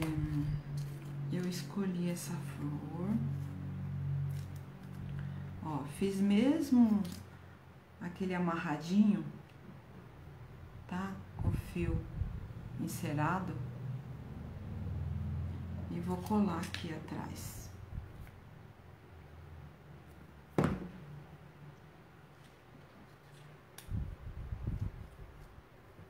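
Paper rustles as hands handle it.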